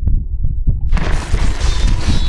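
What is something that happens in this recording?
A game plays a soft whooshing effect.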